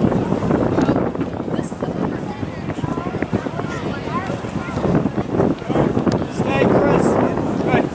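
Spectators close by chatter outdoors.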